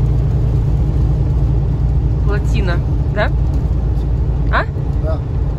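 A truck engine rumbles steadily while driving on a highway.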